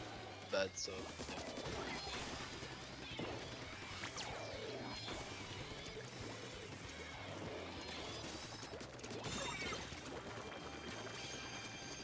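Game sound effects of splashing and shooting play throughout.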